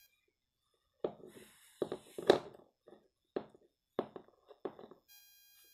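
A plastic toy taps against a hard floor.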